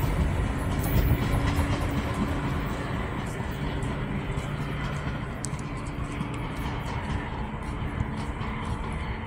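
A freight train rumbles past close by, its wheels clacking on the rails.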